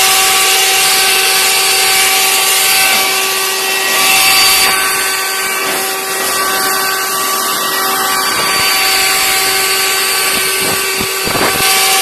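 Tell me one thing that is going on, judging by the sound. A leaf blower whines loudly and steadily up close.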